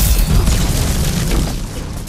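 A pickaxe strikes the ground.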